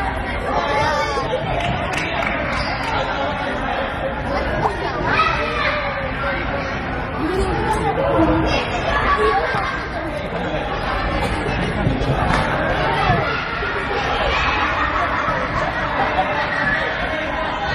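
Children shout and call out to each other in a large echoing gym.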